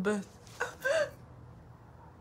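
A young woman cries out loudly, close by.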